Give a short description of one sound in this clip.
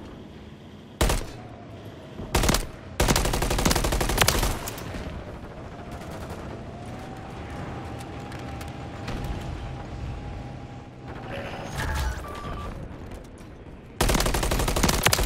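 Gunfire bursts loudly in sharp volleys.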